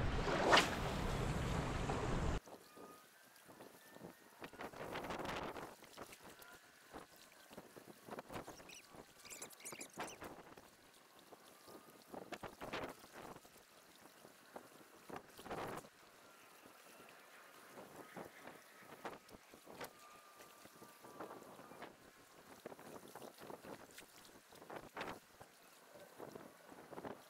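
Small waves lap against the rocky shore.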